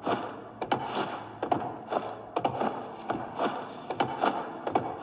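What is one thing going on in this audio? Footsteps thud steadily on hollow wooden floorboards.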